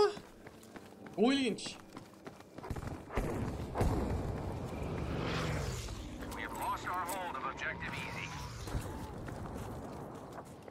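Footsteps crunch quickly on gravel.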